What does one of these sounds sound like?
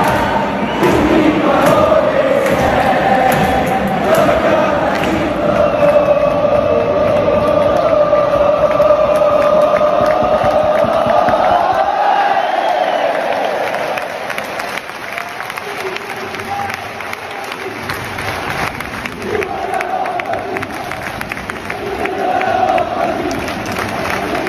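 A large crowd cheers and roars in a big open stadium.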